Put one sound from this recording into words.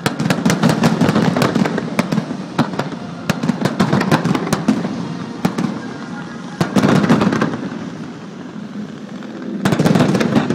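Fireworks bang and crackle in rapid bursts outdoors.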